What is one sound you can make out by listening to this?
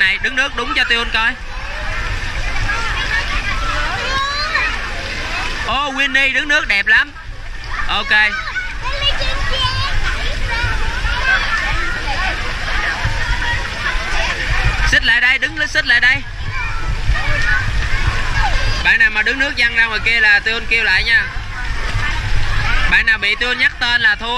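Water splashes as children swim.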